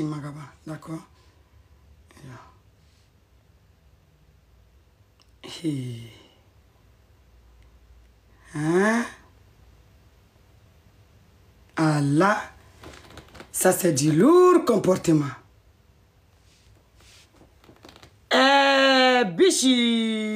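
A young woman speaks close up, with animation and long pauses.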